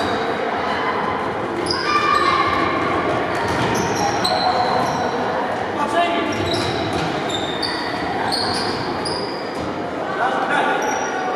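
Shoes squeak sharply on a hard floor.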